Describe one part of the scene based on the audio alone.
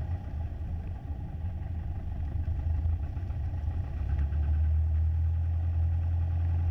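A single-engine piston light aircraft engine drones from inside the cabin and grows louder as the throttle opens.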